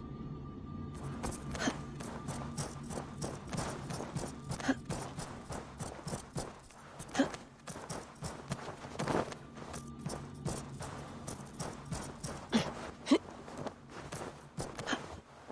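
Footsteps run quickly across a hard surface.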